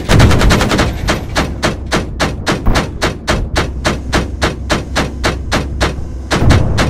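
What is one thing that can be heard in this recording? A tank engine rumbles low.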